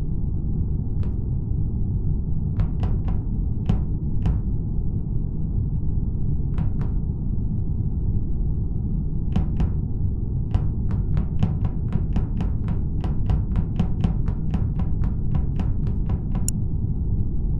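Quick light footsteps patter in a game.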